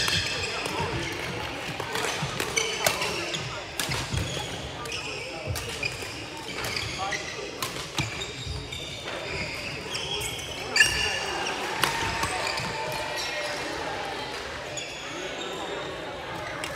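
Sports shoes squeak sharply on the floor.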